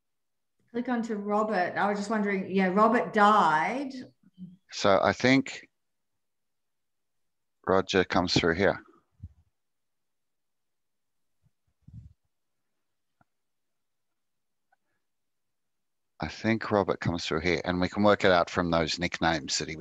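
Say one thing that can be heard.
An older man talks calmly over an online call, in bursts with pauses.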